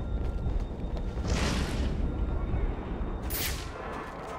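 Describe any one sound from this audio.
A cape flaps in rushing wind during a glide.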